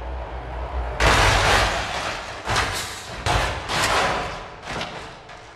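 A truck crashes into cars with loud metal banging.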